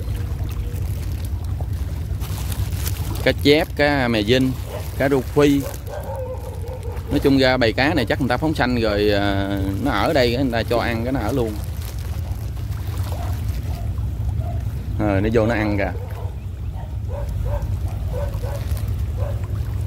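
River water laps gently against floating plants.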